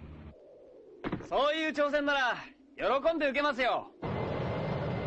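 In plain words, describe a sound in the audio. A young man speaks confidently.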